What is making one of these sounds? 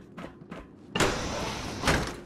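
A metal door slides open.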